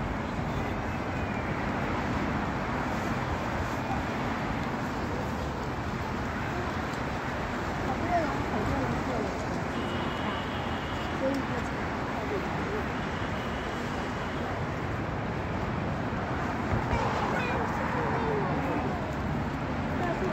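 Traffic rumbles steadily outdoors on a busy street.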